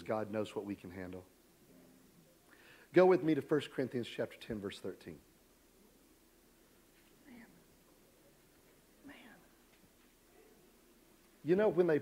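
A middle-aged man speaks calmly into a microphone, with pauses, in a large room.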